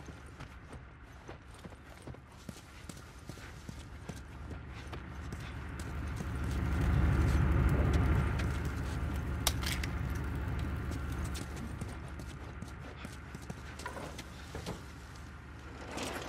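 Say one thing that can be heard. Footsteps shuffle softly across a hard floor.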